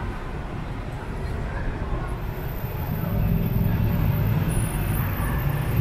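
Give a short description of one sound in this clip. A motorbike engine idles close by.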